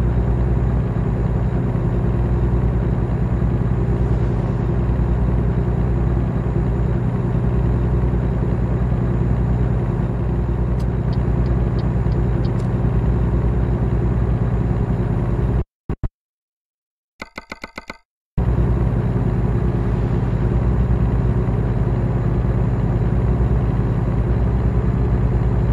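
A truck engine drones steadily at a low pitch.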